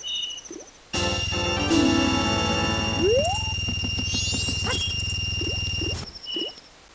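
A short, bright fanfare plays loudly.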